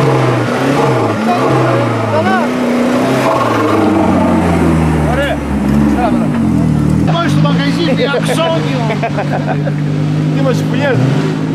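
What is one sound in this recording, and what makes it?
An off-road vehicle's engine revs hard as it climbs.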